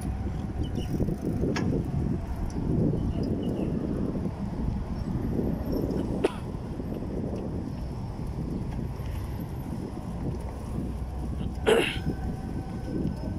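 Wind rumbles and buffets past, outdoors.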